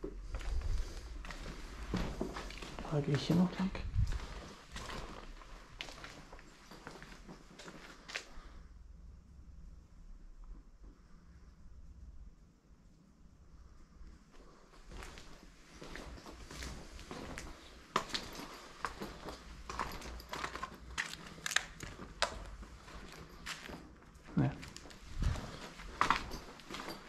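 Footsteps crunch over loose debris on the floor.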